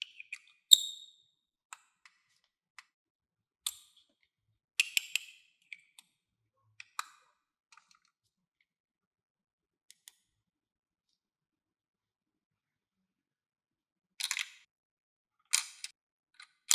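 Plastic toy pieces click and tap together.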